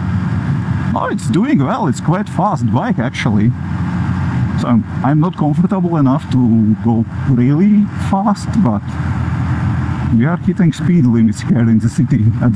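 A man talks with animation close to a helmet microphone.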